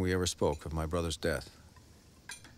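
A man speaks quietly nearby.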